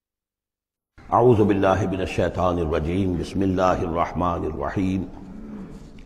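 An elderly man recites in a chanting voice close to a microphone.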